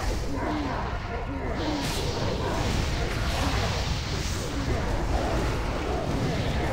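Loud battle effects of spells and blows crash and rumble constantly.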